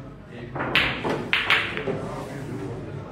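Billiard balls clack together on the table.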